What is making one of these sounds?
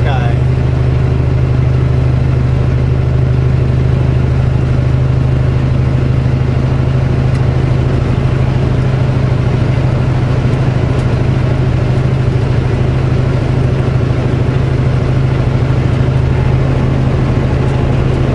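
A truck's diesel engine drones steadily from inside the cab.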